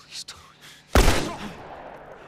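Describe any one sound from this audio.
A single loud gunshot rings out.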